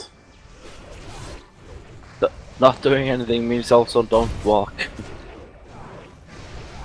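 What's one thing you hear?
Magic spells crackle and whoosh in bursts.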